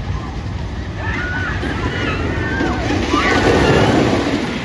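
Riders on a roller coaster scream and shriek nearby.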